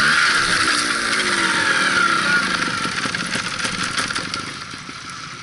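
Branches and leaves rustle as a man drags a motorbike through undergrowth.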